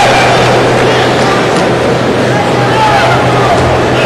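A judo fighter lands with a thud on a mat.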